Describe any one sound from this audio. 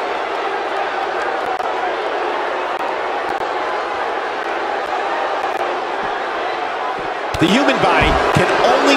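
A crowd cheers steadily in a large echoing arena.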